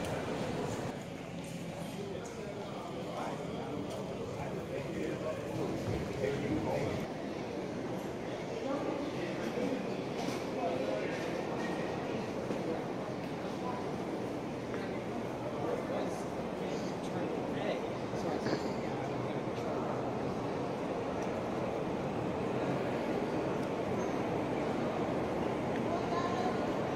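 Footsteps echo in a large hall.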